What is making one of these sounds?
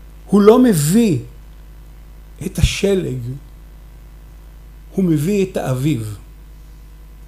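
A middle-aged man speaks calmly into a microphone in short phrases with pauses.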